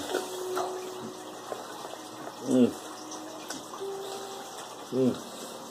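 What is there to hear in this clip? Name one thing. An elderly man chews soft fruit.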